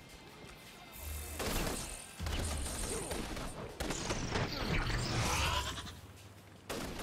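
A whooshing rush sweeps past.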